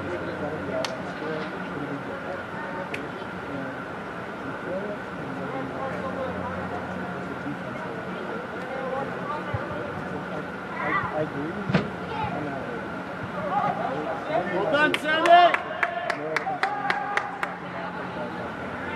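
Young players shout and call out across a large echoing indoor hall.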